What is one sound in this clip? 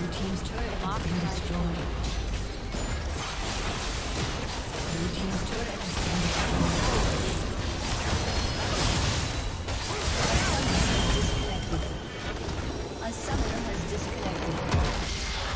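Game spells and weapon hits clash in a busy battle.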